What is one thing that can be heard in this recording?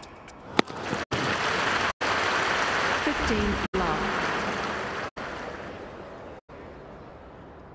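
A crowd cheers and applauds loudly, then fades.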